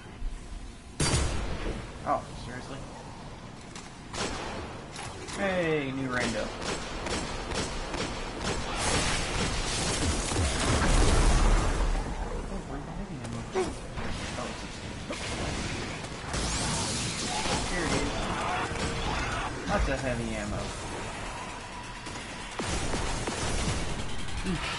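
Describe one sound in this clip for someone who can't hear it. Gunfire cracks and booms in rapid bursts.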